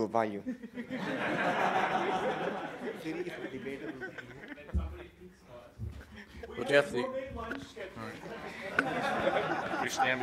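A group of men laugh.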